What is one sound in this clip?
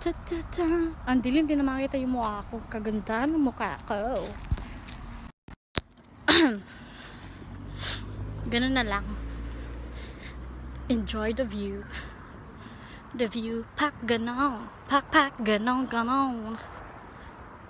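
A woman talks close to a phone's microphone in a lively way.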